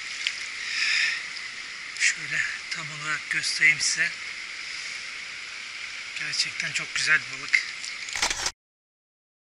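A shallow stream rushes and gurgles over stones close by.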